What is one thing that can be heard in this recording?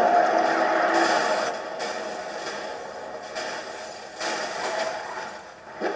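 Cars crash and scrape together with a metallic crunch.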